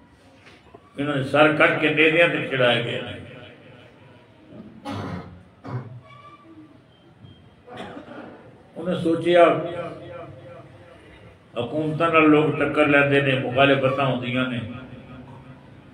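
An elderly man speaks emotionally into a close microphone, in bursts with pauses.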